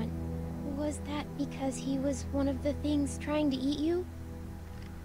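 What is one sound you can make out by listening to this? A young girl speaks softly and hesitantly, close by.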